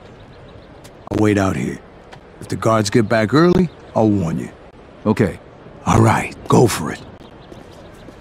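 A middle-aged man answers in a gruff voice.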